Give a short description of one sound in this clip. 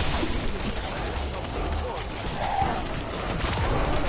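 Electric bolts crackle and zap.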